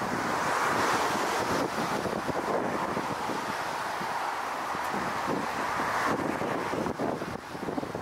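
Jet engines roar loudly as a large airliner lands.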